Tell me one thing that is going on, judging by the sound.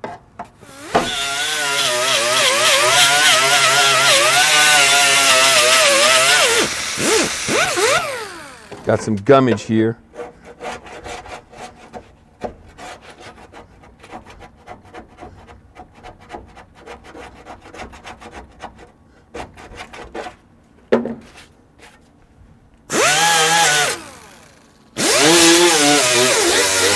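A small air grinder whirs loudly at high speed, stopping and starting again.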